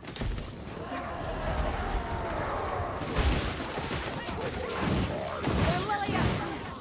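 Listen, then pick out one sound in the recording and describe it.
Enemies screech and growl in combat.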